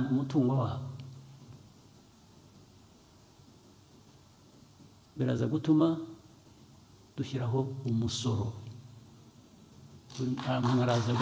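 A man speaks calmly and deliberately into a microphone, with pauses between phrases.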